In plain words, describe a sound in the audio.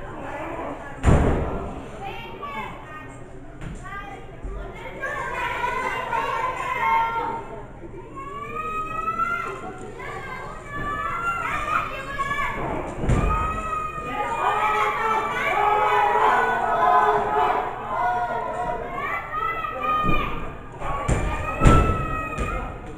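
Bodies slam heavily onto a wrestling ring mat.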